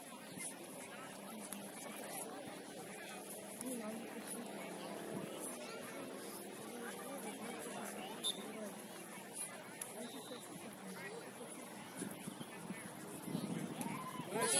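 A crowd of people chatters at a distance outdoors.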